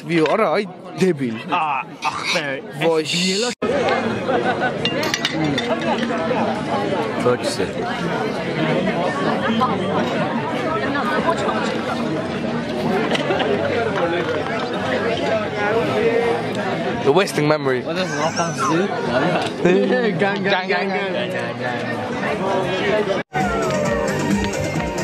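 Many young men and women talk and laugh loudly all around.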